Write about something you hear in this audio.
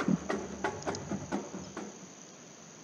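Snare drums rap out a marching beat.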